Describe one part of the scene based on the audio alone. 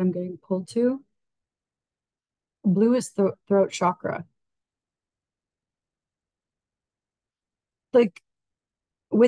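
A middle-aged woman speaks calmly and slowly into a close microphone, with long pauses.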